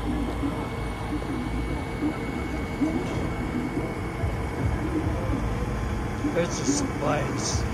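A small tractor engine hums faintly from below.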